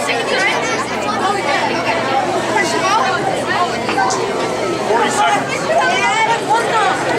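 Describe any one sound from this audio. A crowd of children and adults chatter loudly in an echoing hall.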